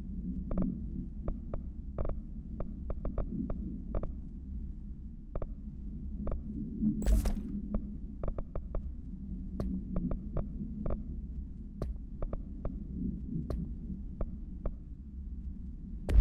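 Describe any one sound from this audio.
Menu clicks tick softly and often as options are selected.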